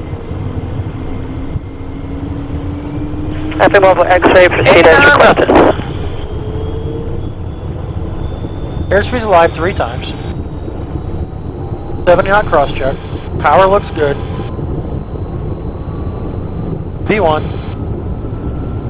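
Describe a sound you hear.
Jet engines roar steadily as the aircraft speeds up.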